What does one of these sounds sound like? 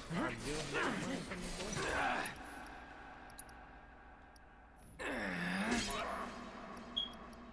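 A sword clashes and slashes in a fight.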